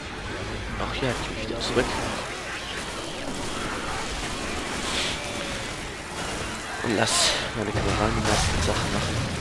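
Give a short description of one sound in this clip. A melee weapon thumps against bodies.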